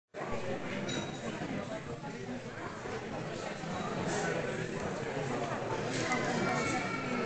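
A crowd of men and women chatter all at once, nearby.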